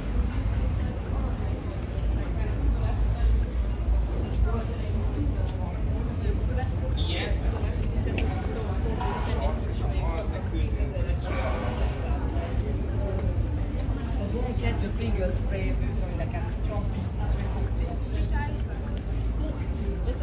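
Footsteps scuff on cobblestones.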